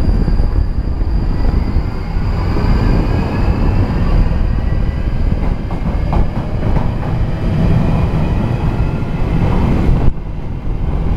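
Train wheels squeal and whine against the rails.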